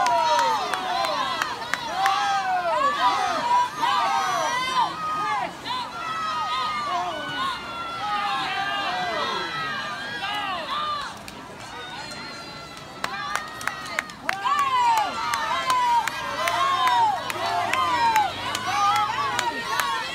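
A crowd of spectators cheers and shouts loudly outdoors.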